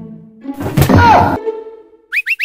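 A young woman shrieks.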